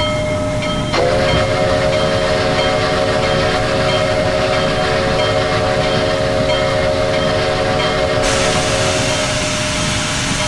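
A steam whistle blows a long, loud chord.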